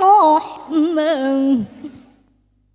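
A young woman sings through a microphone and loudspeakers, holding a long final note.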